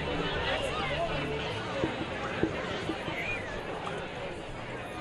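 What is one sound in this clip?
A sparse crowd murmurs and calls out across an open-air stadium.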